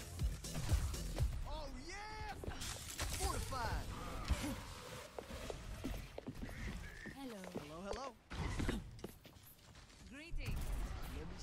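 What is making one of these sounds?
Game weapons fire in rapid bursts with booming impacts.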